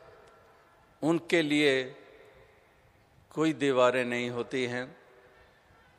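A man sings slowly in a held, wavering voice.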